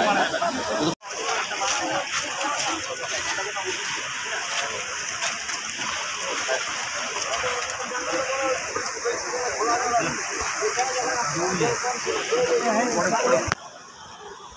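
A crowd of people murmurs and talks nearby, outdoors.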